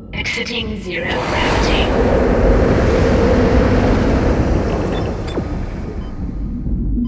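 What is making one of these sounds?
A heavy metal door rumbles and grinds open.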